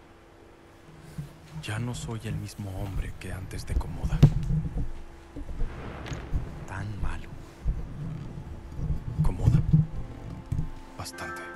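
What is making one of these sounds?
A second man answers in a low, calm voice.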